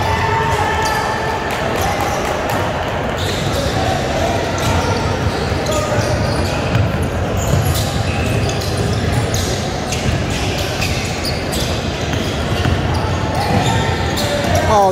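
Young players call out to each other across the gym.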